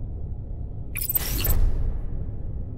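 A digital menu opens with a short electronic whoosh.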